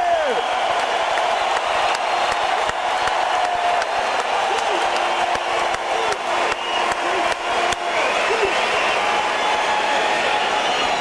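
A rock band plays loudly in a large echoing arena.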